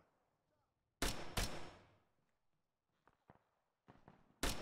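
A rifle fires sharp cracks that echo outdoors.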